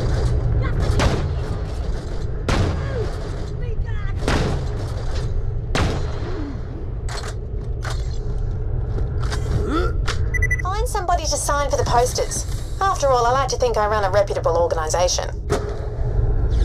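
Gunshots crack sharply, several times.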